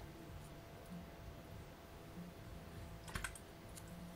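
A young man gulps a drink from a bottle.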